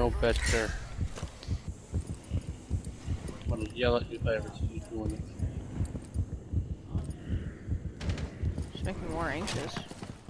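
Boots thud softly against a wall during a rope descent.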